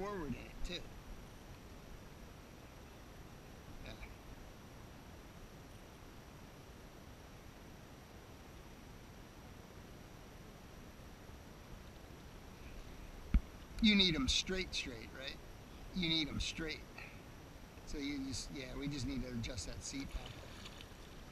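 A paddle dips and splashes gently in water.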